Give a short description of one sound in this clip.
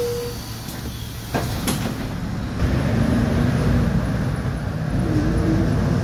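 Passing cars whoosh by close by.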